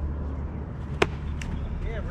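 A ball pops sharply into a catcher's mitt.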